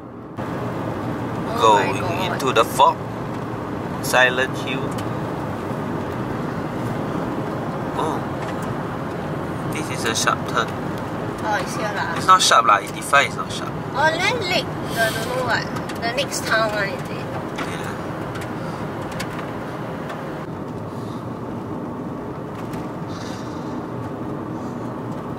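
A car hums steadily along a road from inside.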